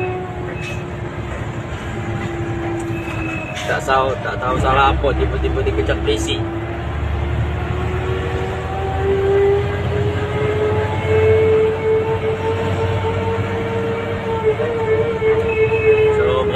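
A car engine hums steadily and slowly rises in pitch as it speeds up.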